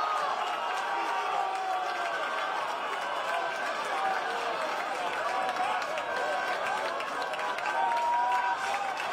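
Young men shout in celebration outdoors.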